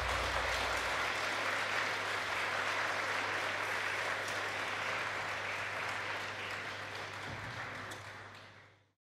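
An audience applauds in a large echoing hall, then the clapping fades away.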